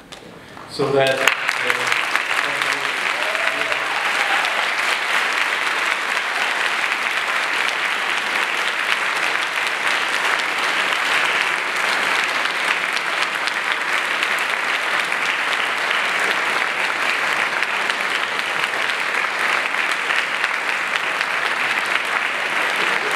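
A large audience applauds and cheers steadily.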